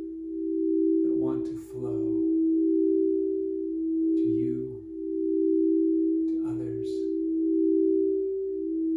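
Singing bowls ring with a steady, humming tone.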